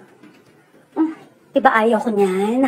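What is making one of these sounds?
A woman speaks with mild indignation, close by.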